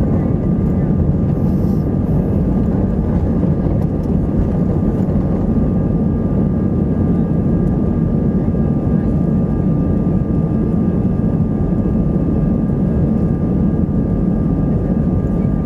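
Airliner wheels rumble over the runway.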